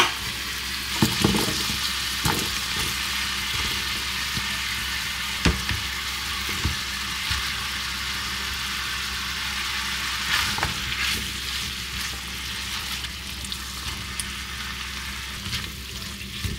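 Chopped vegetables drop into a sizzling pan with soft thuds.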